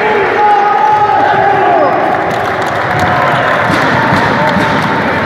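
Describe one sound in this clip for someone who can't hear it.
A group of young men chant and shout together loudly in an echoing hall.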